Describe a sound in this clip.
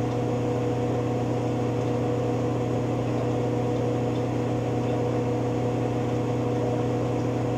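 Water sloshes inside a washing machine drum.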